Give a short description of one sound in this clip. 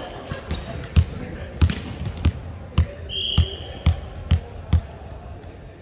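A volleyball is bounced on a wooden floor, thudding repeatedly in a large echoing hall.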